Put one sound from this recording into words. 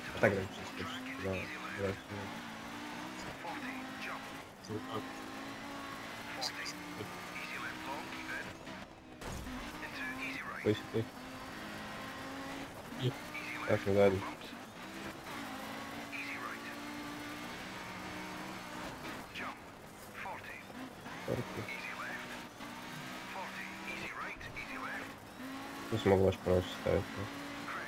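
A rally car engine revs loudly, rising and falling as gears shift.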